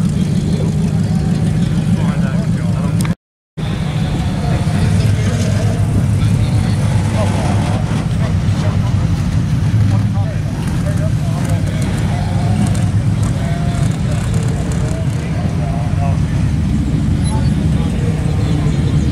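A car engine rumbles deeply as a car rolls slowly over grass.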